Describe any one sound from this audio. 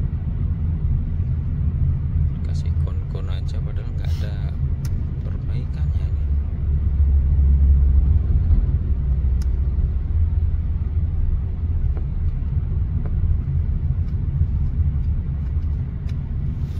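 A car engine hums low and steady from inside the cabin as the car rolls slowly along a road.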